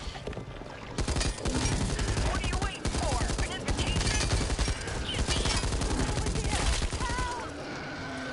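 A heavy machine gun fires in rapid, loud bursts.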